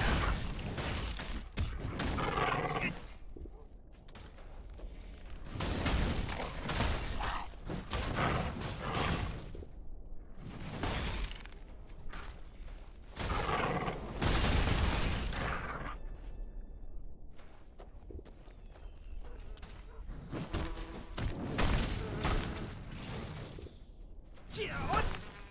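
Sword swings whoosh and strike with sharp hits.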